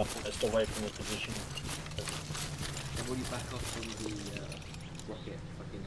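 Footsteps crunch quickly over dry grass.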